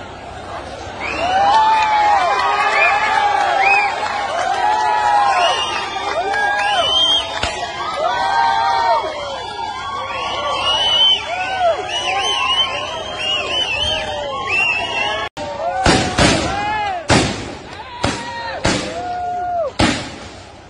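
A crowd of men shouts and yells loudly outdoors.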